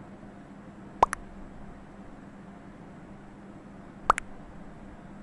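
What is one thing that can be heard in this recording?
A game plays a short rising double blip as a new chat message pops up.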